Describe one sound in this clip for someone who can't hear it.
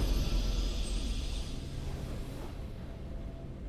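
A triumphant victory fanfare swells with a bright shimmer and fades.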